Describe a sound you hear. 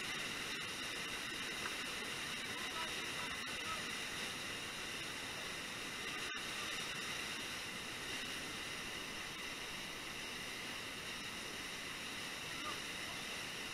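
White water roars steadily down a rocky falls close by.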